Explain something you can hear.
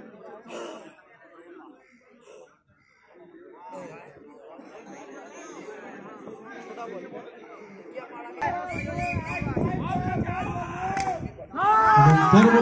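A crowd of young men chatters and calls out outdoors.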